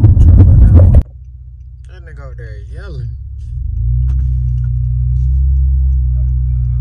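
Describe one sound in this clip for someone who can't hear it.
A car drives along, heard from inside.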